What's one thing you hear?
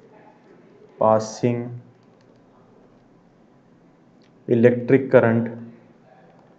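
A young man speaks in short phrases close to a microphone, explaining calmly.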